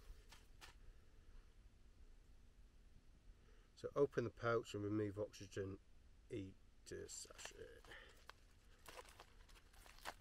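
A paper packet crinkles and rustles in a man's hands.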